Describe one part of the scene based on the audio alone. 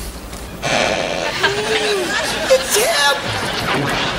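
A woman speaks in a high, exaggerated voice.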